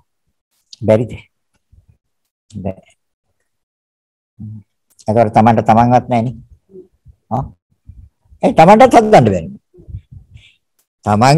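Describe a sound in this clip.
An elderly man speaks calmly and slowly over an online call, with pauses.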